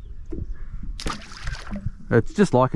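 A small fish splashes into the water close by.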